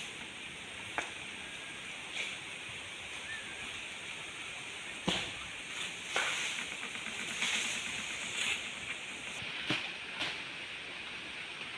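A climber scrapes and knocks against a palm trunk.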